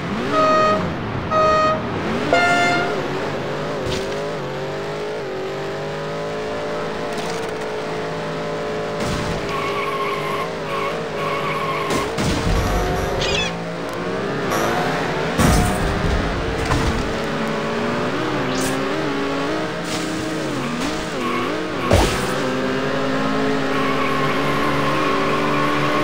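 A video game kart engine hums and revs.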